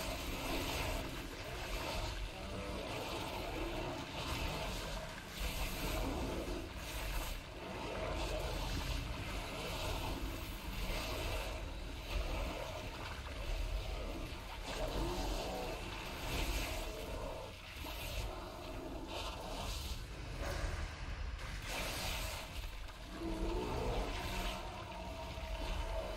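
Magic spells crackle and whoosh in a fierce fight.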